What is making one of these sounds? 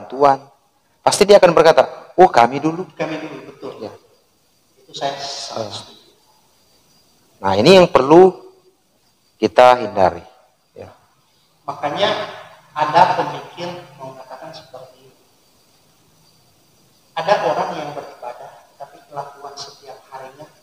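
A man speaks calmly and close, with pauses.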